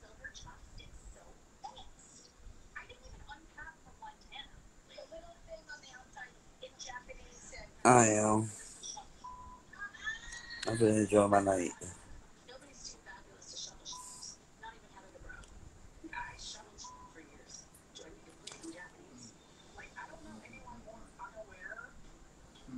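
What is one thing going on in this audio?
A young man talks casually over a phone live stream.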